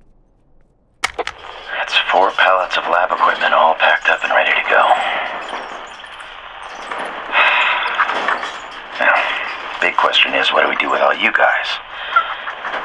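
A man's recorded voice speaks calmly through a small, tinny voice recorder.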